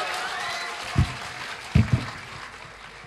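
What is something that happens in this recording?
Equipment on a stage thumps loudly a few times.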